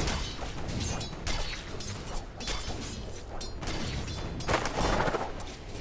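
Game weapons clash and strike repeatedly.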